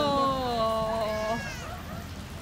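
A person in a costume lets out a low, wavering moan close by.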